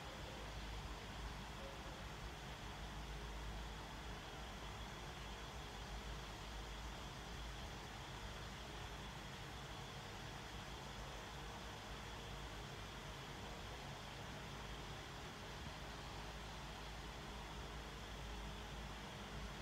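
An electric fan whirs steadily nearby.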